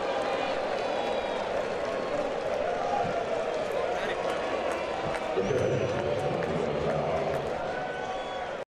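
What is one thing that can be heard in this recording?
A stadium crowd cheers and roars steadily.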